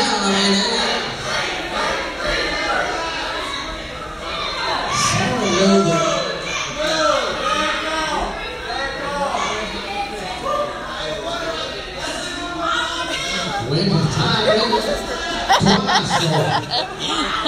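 A small crowd chatters and calls out in a large echoing hall.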